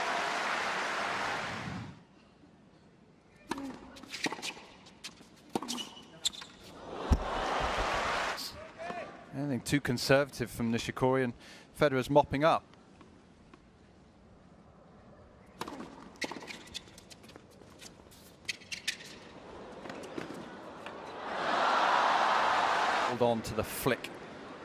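A crowd applauds in a large arena.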